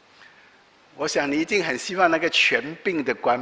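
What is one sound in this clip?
A middle-aged man speaks with animation into a microphone.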